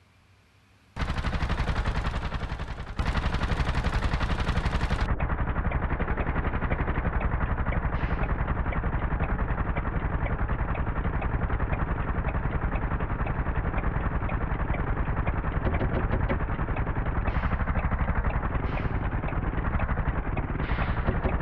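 A small engine chugs steadily at speed.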